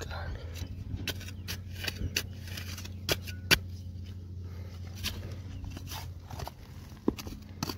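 A small trowel scrapes and crunches through dry, stony soil.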